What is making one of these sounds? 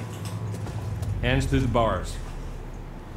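A man speaks firmly in a deep voice.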